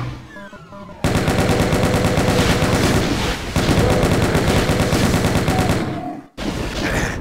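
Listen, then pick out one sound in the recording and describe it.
A heavy gun fires in a rapid, rattling burst.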